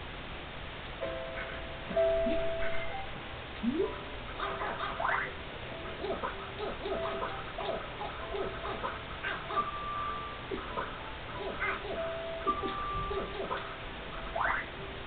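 Gentle video game music plays with a plucked tune.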